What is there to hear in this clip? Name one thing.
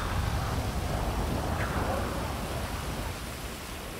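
Wind rushes loudly past a falling man.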